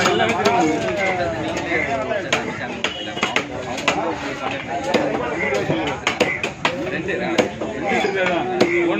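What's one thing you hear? A heavy knife chops through fish onto a wooden block with sharp thuds.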